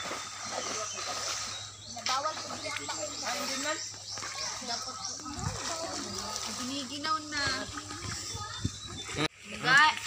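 Children splash in water.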